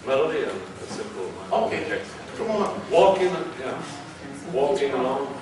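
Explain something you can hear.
A man speaks loudly and with animation in an echoing room.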